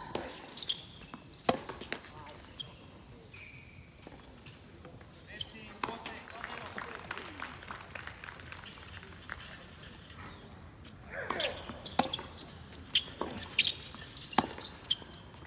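A tennis racket strikes a tennis ball back and forth in a rally.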